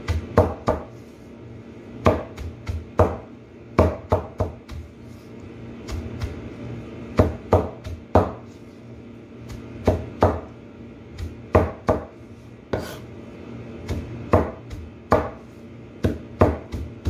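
A knife chops leafy greens on a cutting board with repeated sharp thuds.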